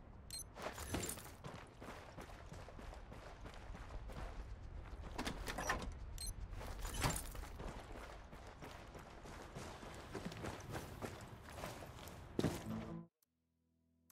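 Footsteps crunch on snow and hard ground.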